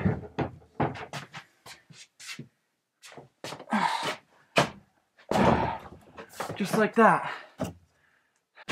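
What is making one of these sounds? A heavy wooden door bumps and scrapes as it is moved.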